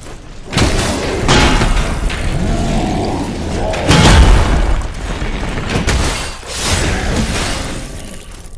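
A heavy weapon strikes armor with loud clashing blows.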